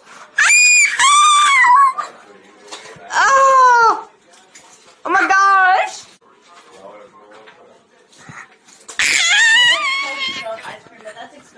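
A woman screams loudly in high, drawn-out bursts close by.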